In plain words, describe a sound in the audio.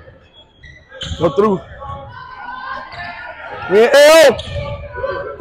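Spectators shout loudly from the stands.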